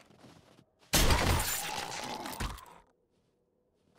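A crossbow fires a bolt.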